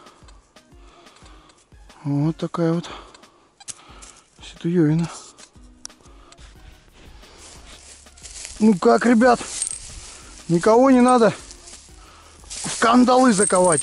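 Footsteps crunch and rustle through dry grass outdoors.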